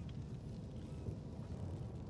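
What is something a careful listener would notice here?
A fire burns with a low roar.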